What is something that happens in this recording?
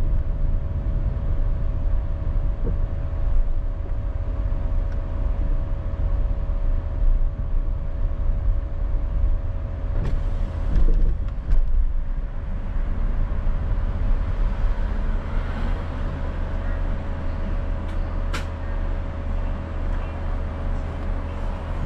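A car engine hums steadily while driving slowly.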